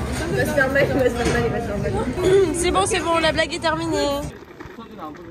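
Young people laugh and chatter close by.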